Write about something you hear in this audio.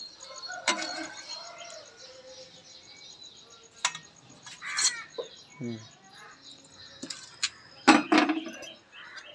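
A metal spatula clinks and scrapes against a pan.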